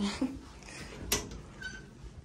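A door handle clicks as it is turned.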